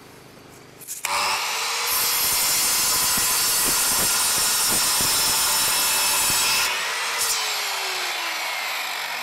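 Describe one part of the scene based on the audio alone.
A power saw whines loudly as it cuts through wood.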